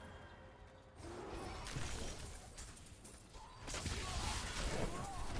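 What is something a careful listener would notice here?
A game character's weapon strikes enemies with sharp impacts.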